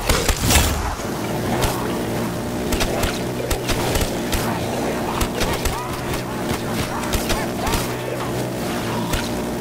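A rotary gun fires a rapid, steady stream of shots.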